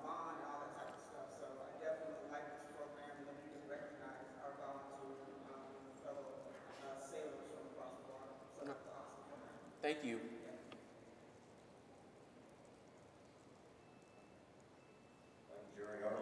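A man speaks with animation through a microphone and loudspeakers in a large room.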